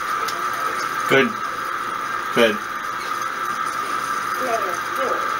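A pinball machine gives a steady electronic hum.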